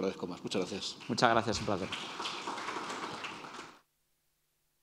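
A middle-aged man speaks calmly into a microphone, then stops abruptly.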